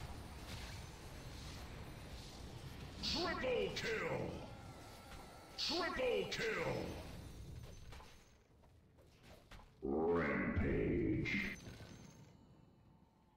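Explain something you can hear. Game fighters clash with impacts.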